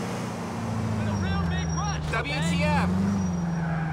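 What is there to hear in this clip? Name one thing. Car tyres screech sharply on the road.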